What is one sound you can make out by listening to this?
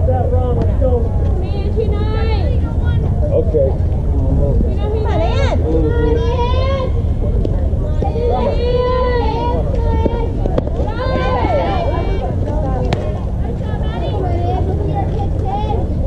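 Young players shout and cheer across an open field.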